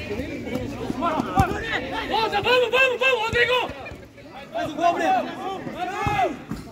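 Young men shout to each other across a pitch outdoors.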